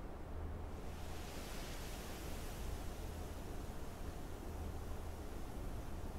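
A waterfall rushes softly in the distance.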